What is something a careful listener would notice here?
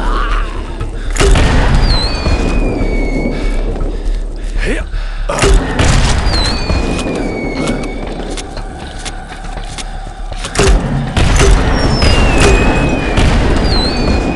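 A heavy gun fires loud booming shots.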